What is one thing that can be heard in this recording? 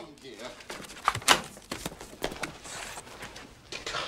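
Paper rustles and clicks on a clipboard.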